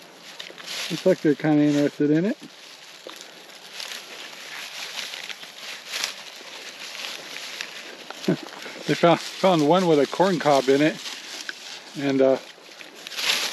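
An elderly man talks calmly close by.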